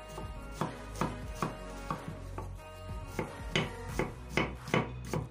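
A knife chops on a wooden board with sharp, regular knocks.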